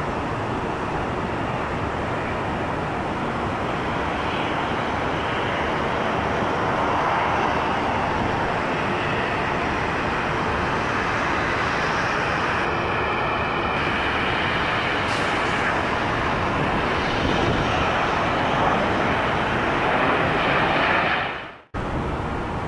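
A jet airliner's engines roar steadily as it comes in to land.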